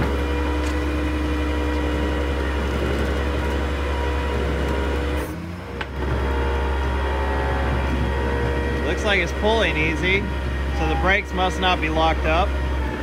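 An electric winch whines steadily as it pulls a car up a ramp.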